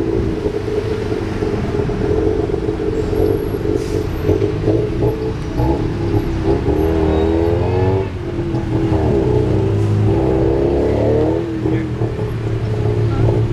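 Traffic rumbles past on a busy road.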